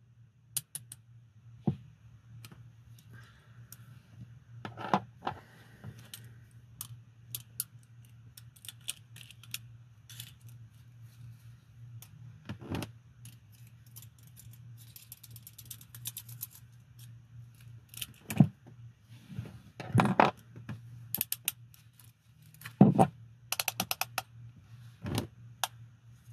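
Metal handcuffs clink and rattle as they are handled.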